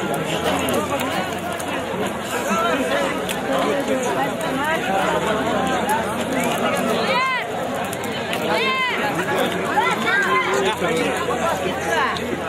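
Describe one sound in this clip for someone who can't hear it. A large crowd of men shouts and chatters nearby outdoors.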